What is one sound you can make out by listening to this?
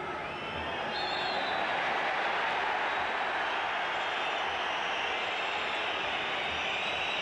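A stadium crowd roars louder after a fall on the pitch.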